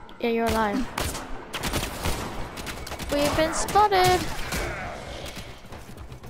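Sharp blows and slashing hits land in a fast melee fight.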